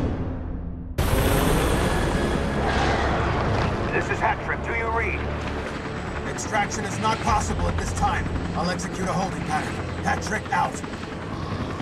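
A helicopter's rotor thuds and drones steadily.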